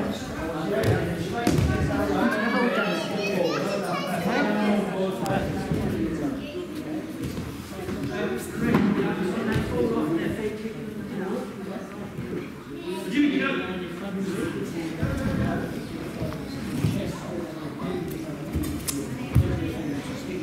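Bodies thud onto padded mats.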